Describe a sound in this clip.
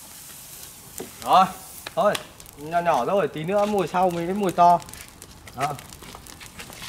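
A fire crackles as it burns through straw.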